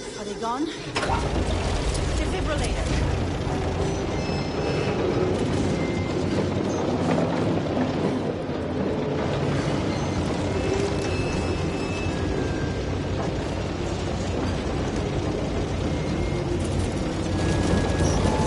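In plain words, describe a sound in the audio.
A loud engine rumbles steadily.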